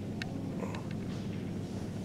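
Visitors murmur quietly in a large echoing hall.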